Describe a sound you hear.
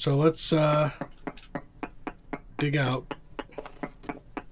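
A pickaxe chips at stone with quick, regular knocks.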